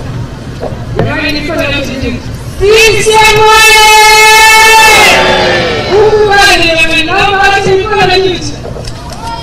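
A woman sings loudly through a loudspeaker.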